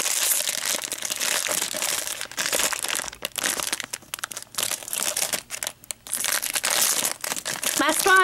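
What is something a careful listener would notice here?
A foil wrapper crinkles and rustles in a hand.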